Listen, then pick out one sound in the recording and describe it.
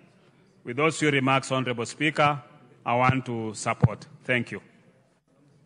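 A man speaks firmly into a microphone in a large hall.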